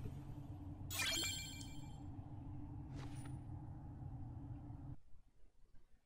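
Game music plays steadily.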